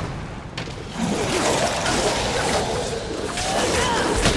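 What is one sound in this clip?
Blades strike and slash with sharp impacts.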